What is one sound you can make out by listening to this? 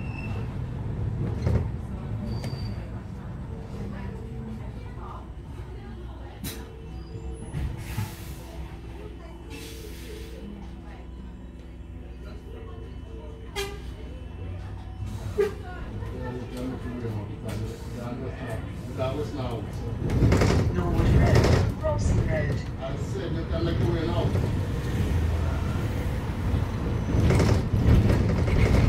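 A bus engine hums and rumbles steadily from inside.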